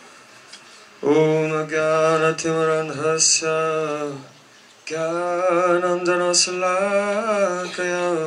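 A young man sings into a microphone in a steady, drawn-out melody.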